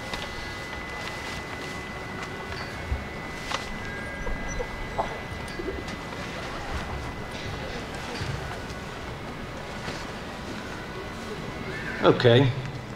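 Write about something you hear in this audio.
A man speaks through a loudspeaker outdoors.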